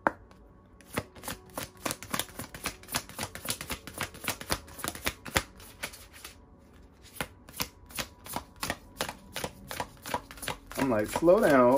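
Playing cards riffle and flick rapidly as they are shuffled close by.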